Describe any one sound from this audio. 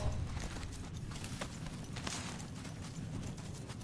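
Feet swish through tall grass.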